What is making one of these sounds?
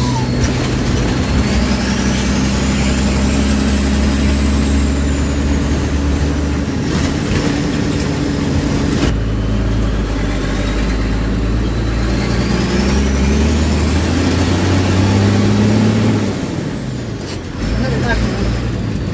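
The vehicle rattles and clatters over the road.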